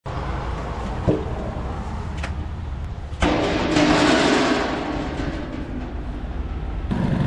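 Live fish flop and slap against a plastic basket and the ground.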